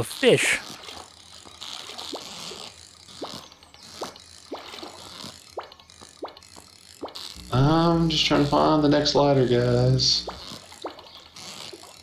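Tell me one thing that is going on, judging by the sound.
A fishing reel clicks quickly as a line is reeled in.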